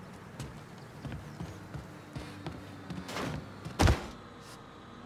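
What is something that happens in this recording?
Soft sneaking footsteps creak on wooden floorboards.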